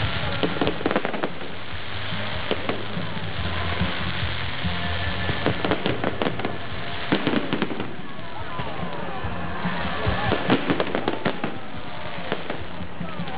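Fireworks bang and crackle in rapid bursts.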